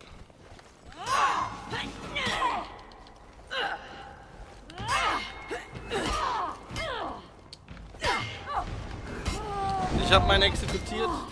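Metal blades clash and ring sharply.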